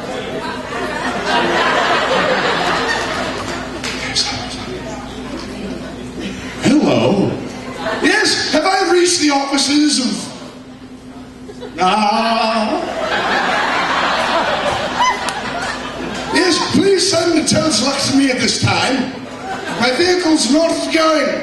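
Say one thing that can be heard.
A man speaks with animation into a microphone, loud and amplified.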